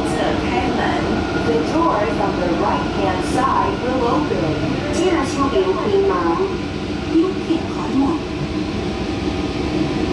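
A train slows down and comes to a stop.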